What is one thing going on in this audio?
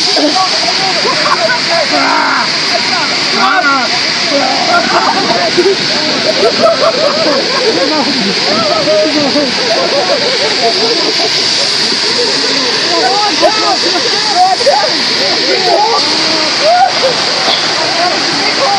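A crowd of young people chatters and laughs nearby outdoors.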